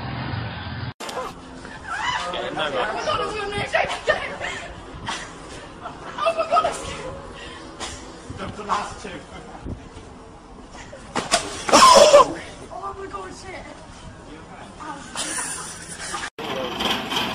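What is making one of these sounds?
Young people laugh and shout nearby.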